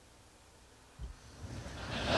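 A glass knocks softly on a hard surface.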